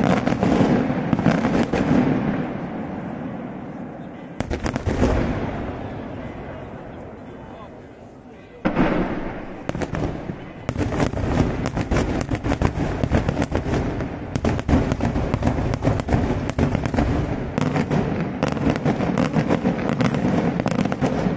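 Daytime fireworks shells boom far off, echoing off the hills.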